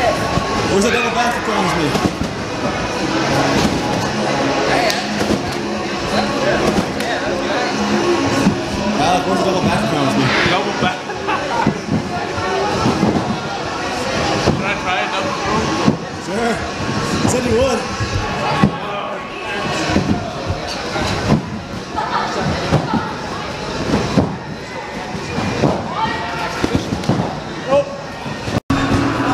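A man lands with heavy thumps on a trampoline.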